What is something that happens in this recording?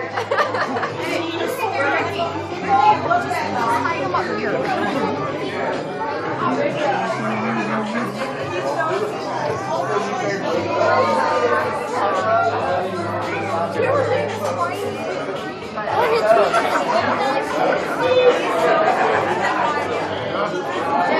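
A crowd of men and women talks and cheers.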